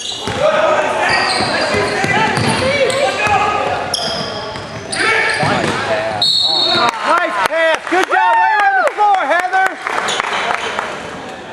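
A crowd of spectators cheers and shouts loudly in an echoing gym.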